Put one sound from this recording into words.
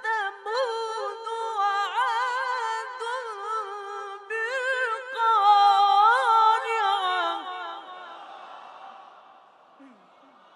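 A boy chants melodically into a microphone, his voice echoing and fading away.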